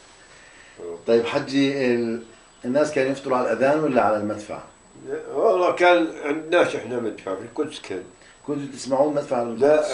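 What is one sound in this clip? An elderly man speaks in an emotional, unsteady voice close by.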